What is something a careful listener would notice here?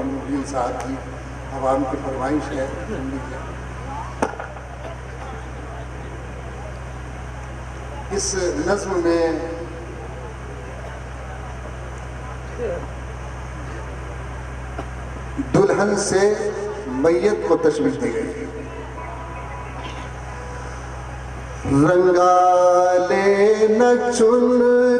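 A man speaks into a microphone over loudspeakers, with long pauses.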